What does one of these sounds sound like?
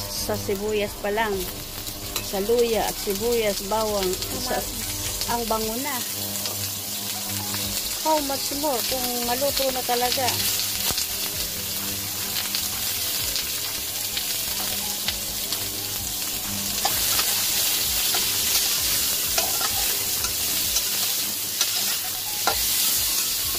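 Onions sizzle in oil in a wok.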